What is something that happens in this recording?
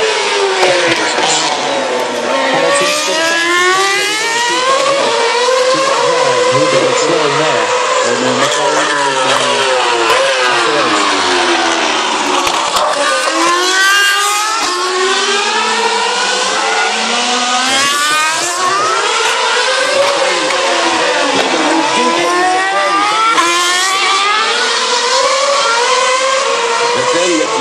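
Racing car engines scream past one after another, their pitch rising and falling as they shift gears.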